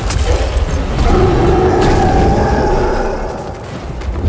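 A huge creature roars loudly.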